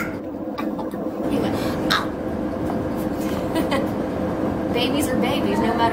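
A woman laughs and talks nearby.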